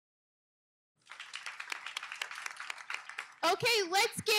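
A room full of people applauds.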